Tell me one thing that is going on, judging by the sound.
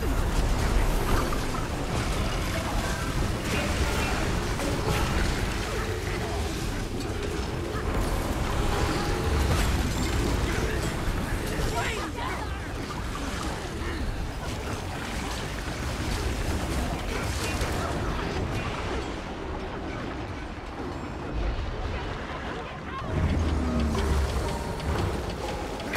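Spell effects crackle and burst in quick succession throughout a game battle.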